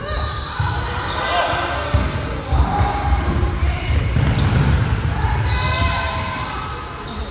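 Children shout and call out while running.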